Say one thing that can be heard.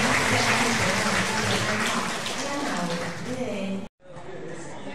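A crowd chatters loudly in an echoing room.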